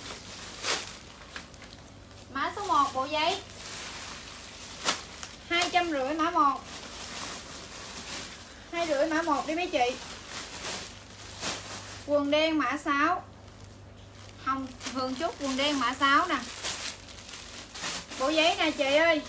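Fabric rustles as clothes are handled.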